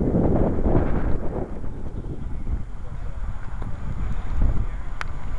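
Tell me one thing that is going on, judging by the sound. Wind buffets the microphone outdoors with a low rumble.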